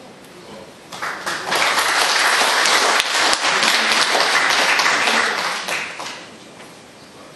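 An audience applauds loudly in a large room.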